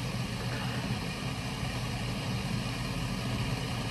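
A woman sips a drink.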